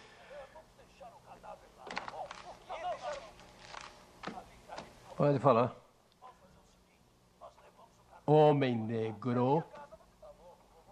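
A middle-aged man talks calmly on a phone, close by.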